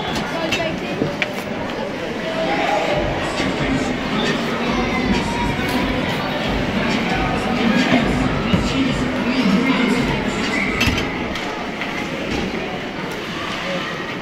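Hockey sticks clack against the puck and the ice.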